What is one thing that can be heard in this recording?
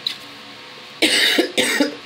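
A woman coughs into her hand.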